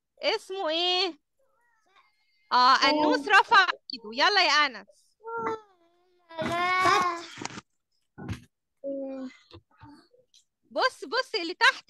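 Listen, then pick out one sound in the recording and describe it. A young child speaks over an online call.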